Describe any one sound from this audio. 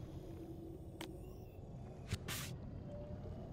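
A game menu clicks as a panel opens.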